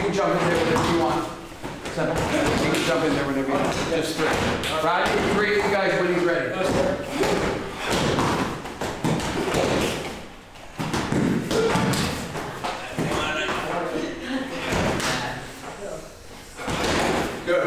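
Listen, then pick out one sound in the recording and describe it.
A man speaks loudly and with animation in an echoing room.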